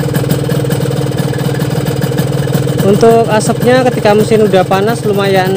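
A motorcycle engine idles with a steady, rapid putter close by.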